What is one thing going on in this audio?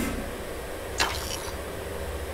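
A short game menu click sounds as a purchase is confirmed.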